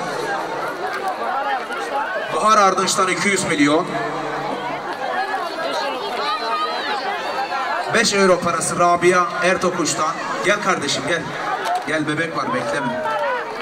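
An older man speaks loudly into a microphone through a loudspeaker.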